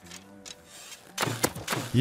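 A bowstring creaks as a bow is drawn.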